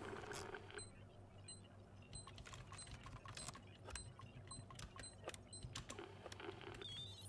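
A handheld scanner beeps in short, regular ticks.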